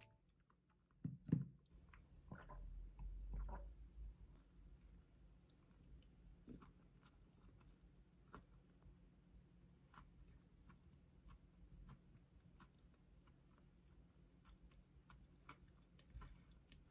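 A person bites and chews food close by, with soft wet crunches.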